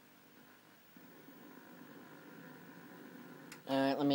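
A television hisses with static.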